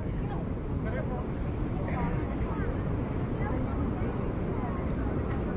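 Wind blows into the microphone.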